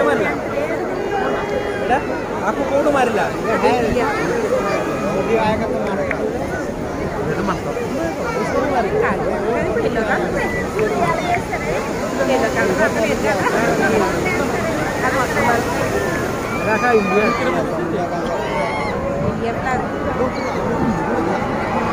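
A large crowd of people talks and shouts excitedly nearby, outdoors.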